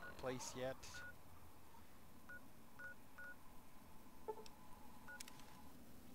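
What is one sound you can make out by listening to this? An electronic device beeps softly a few times.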